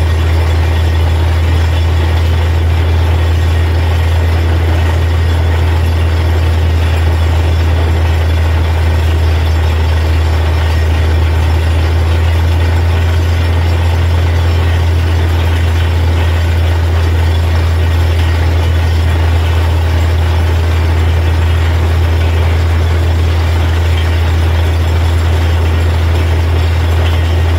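A diesel engine drones loudly and steadily.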